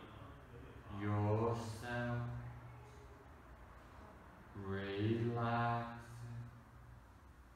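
A man speaks calmly and slowly in a soothing tone.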